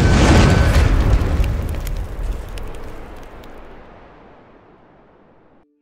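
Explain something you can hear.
Flames crackle and rumble, then fade away.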